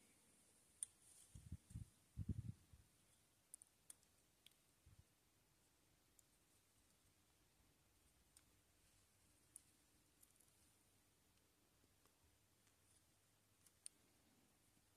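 Small plastic parts click and tick softly as fingers handle them.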